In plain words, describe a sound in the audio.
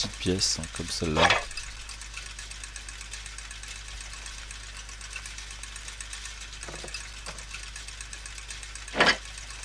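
Metal gears click and clank as they are moved into place.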